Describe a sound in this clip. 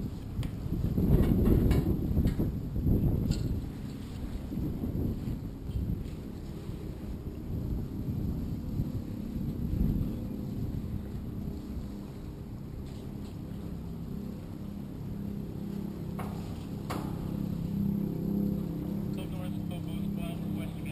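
Wind blows across open water, rumbling against the microphone.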